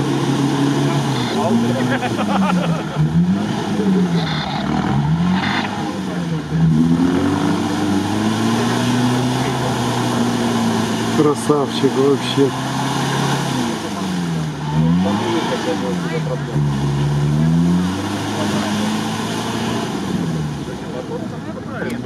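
An off-road vehicle's engine revs up and down hard.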